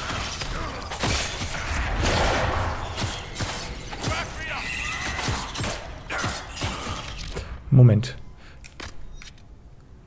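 Spell blasts and weapon hits crash in quick succession.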